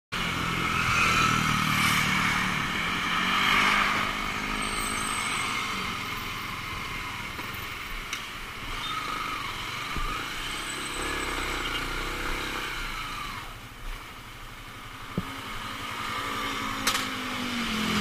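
A motorcycle engine hums while riding.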